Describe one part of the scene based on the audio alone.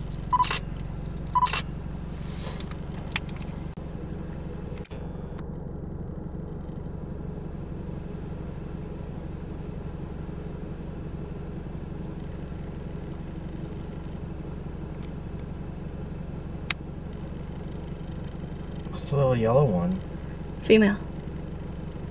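A small bird chirps nearby.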